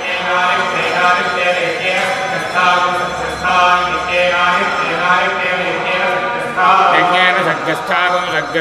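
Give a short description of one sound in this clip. Men chant together in unison through microphones.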